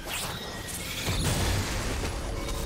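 A loud fiery explosion booms.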